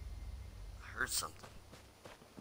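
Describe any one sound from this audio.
A short chime rings out for a game achievement.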